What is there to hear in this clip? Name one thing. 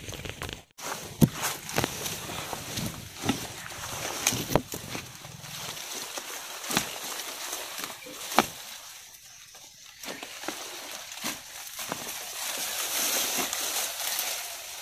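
Leaves and stalks rustle as someone pushes through dense plants.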